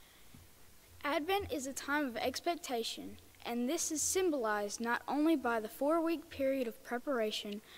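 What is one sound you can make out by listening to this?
A young girl speaks into a microphone in a hall, a little hesitantly.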